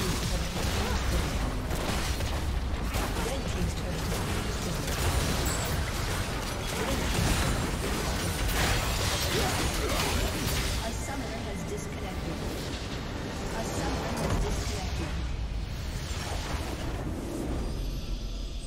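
Game spells and weapon blows clash loudly in a hectic fight.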